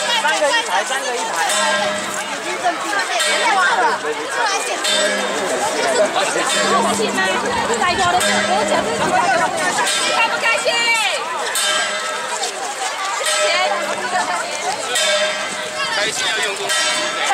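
A large crowd of men and women chatters and calls out loudly all around, outdoors.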